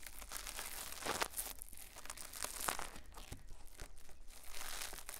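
A thin tool scratches and taps against a microphone close up, with crisp rustling.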